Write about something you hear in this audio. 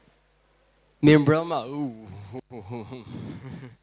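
A man speaks loudly through a microphone in an echoing hall.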